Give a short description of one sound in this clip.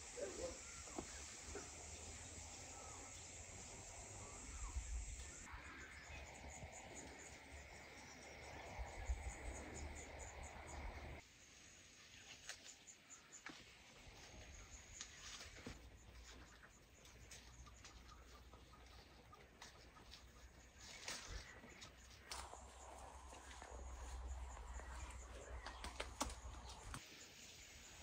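Wind blows outdoors and buffets the microphone.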